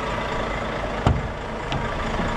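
A truck door clicks open.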